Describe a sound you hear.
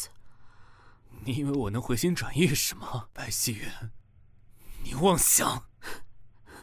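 A young man speaks with rising anger, close by.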